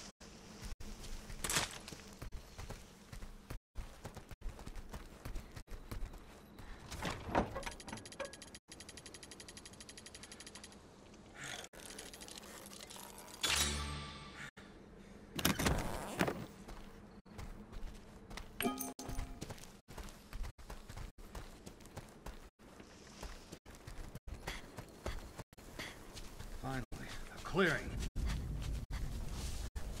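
Footsteps crunch on a forest floor.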